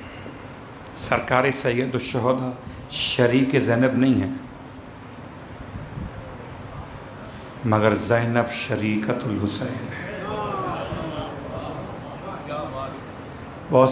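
A middle-aged man speaks with animation into a microphone, heard through a loudspeaker.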